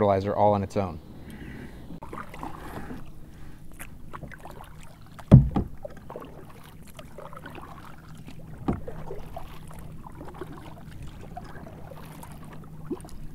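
A paddle splashes in water.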